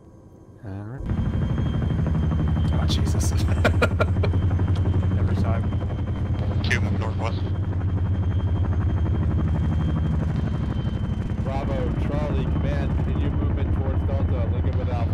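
A helicopter's rotor thumps loudly and steadily overhead.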